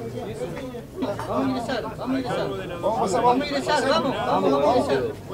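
A middle-aged man speaks with animation amid a crowd.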